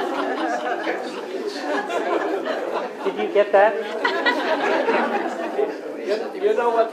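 An elderly man speaks to a small group.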